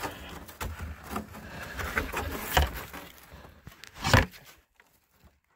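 A plastic snow shovel scrapes and thuds against packed snow.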